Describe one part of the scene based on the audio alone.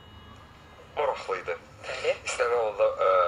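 A woman speaks with animation, heard through a microphone.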